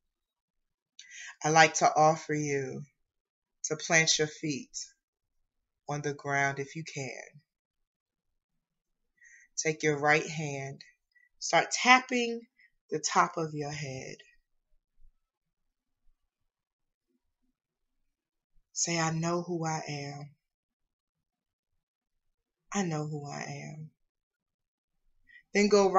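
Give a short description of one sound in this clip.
A woman speaks calmly into a microphone in short phrases with pauses.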